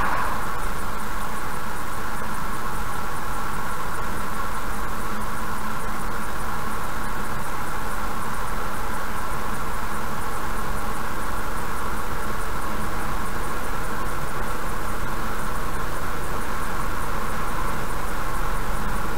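A car engine hums steadily while driving along a highway.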